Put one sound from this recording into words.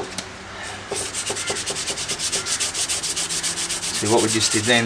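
A hand rubs sandpaper back and forth over a metal panel with a rapid scratching.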